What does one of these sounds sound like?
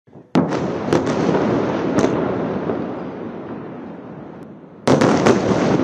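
A huge explosion booms and rumbles across a city.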